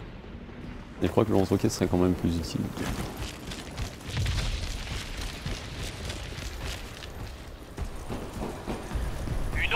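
A young man talks with animation into a headset microphone, close up.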